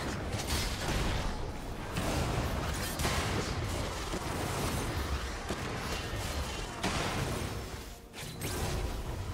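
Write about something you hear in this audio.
Rapid video game combat effects clash and crackle.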